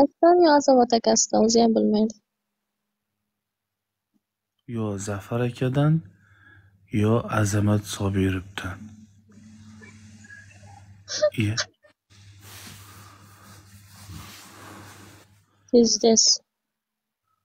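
A young woman talks softly through an online call.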